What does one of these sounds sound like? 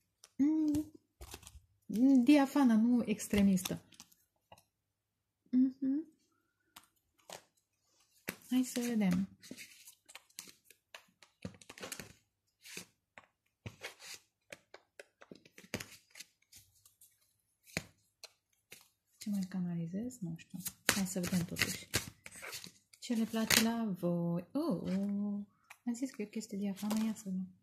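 Playing cards rustle and tap as a hand handles them.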